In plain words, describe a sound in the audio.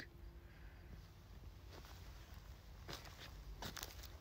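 A small animal rustles through dry twigs and leaves.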